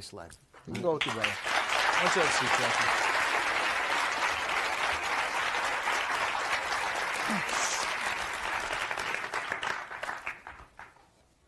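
A studio audience applauds and cheers loudly.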